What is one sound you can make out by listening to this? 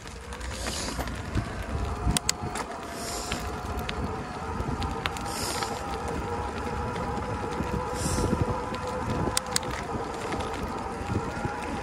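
A small motorcycle engine hums steadily.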